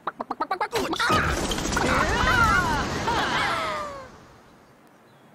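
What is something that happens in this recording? A bright, cheerful victory tune plays.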